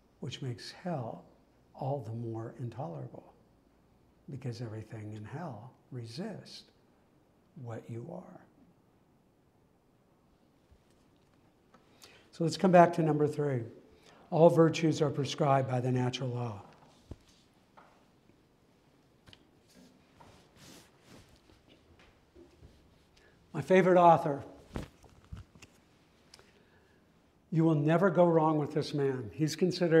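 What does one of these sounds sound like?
A man lectures in a calm, measured voice, with pauses between phrases.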